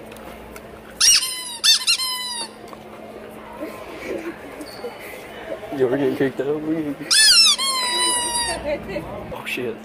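A rubber toy squeaks loudly in sharp bursts.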